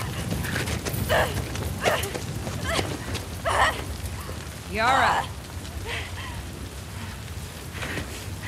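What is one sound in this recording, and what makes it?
A young woman screams.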